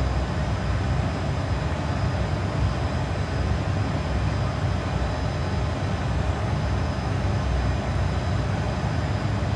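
A steady, low roar of jet engines and rushing air fills an aircraft cockpit.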